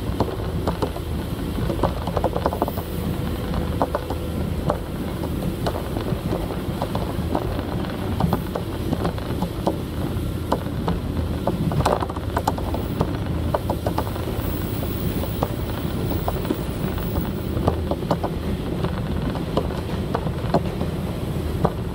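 A diesel railcar's engine rumbles, heard from inside the carriage.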